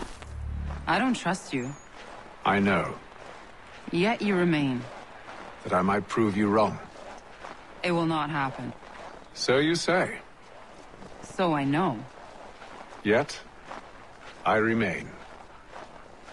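A woman speaks calmly in reply.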